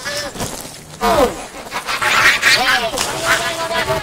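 Water splashes as a child sits down in a paddling pool.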